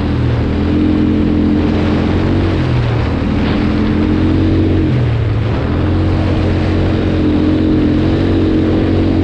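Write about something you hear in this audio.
A quad bike engine drones steadily, rising and falling in pitch as the throttle changes.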